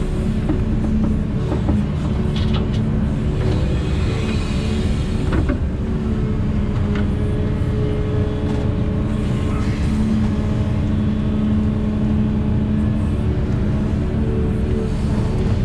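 A diesel engine rumbles steadily up close.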